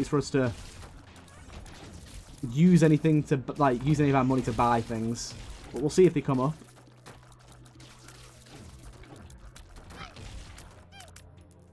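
Creatures squelch and burst wetly in a video game.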